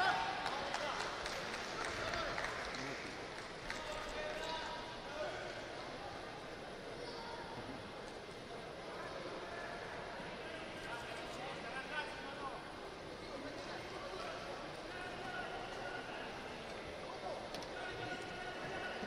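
A crowd cheers and chatters in a large echoing arena.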